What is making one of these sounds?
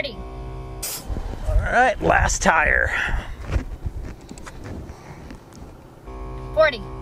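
Air hisses from a hose into a tyre.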